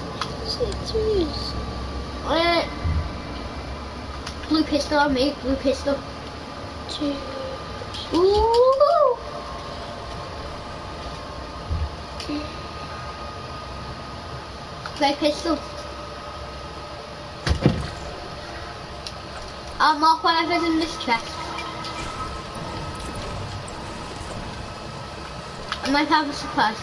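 A boy talks with animation close to a microphone.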